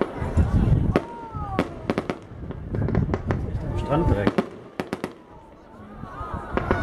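Fireworks whistle as they shoot up.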